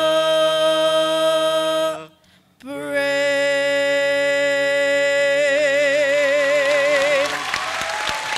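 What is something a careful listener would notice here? A young woman sings long held notes through a microphone in a large hall.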